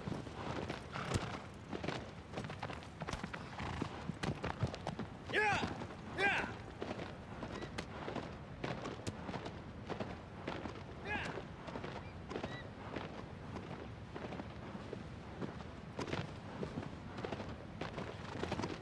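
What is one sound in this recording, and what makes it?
A horse's hooves clop steadily on hard, rocky ground.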